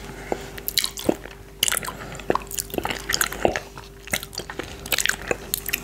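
A man licks yoghurt off his finger with wet mouth sounds close to a microphone.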